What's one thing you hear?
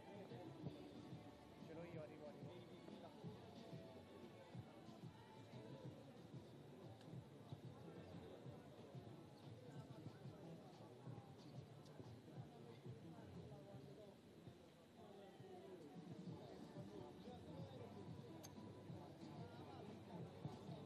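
A crowd of men murmurs and chatters outdoors at a distance.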